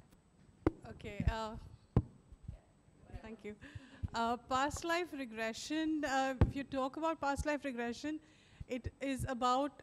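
A woman speaks animatedly into a microphone.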